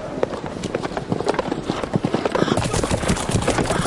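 Horses gallop past, hooves pounding on frozen ground.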